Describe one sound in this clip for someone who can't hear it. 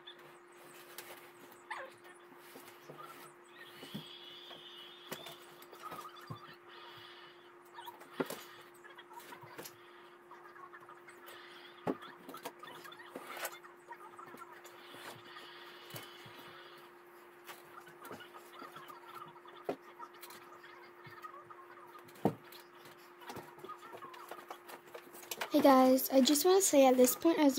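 A mattress thumps and rustles as it is dragged and shifted about.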